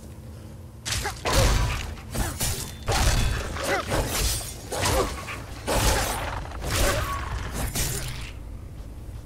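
Sword blows strike and slash in quick bursts.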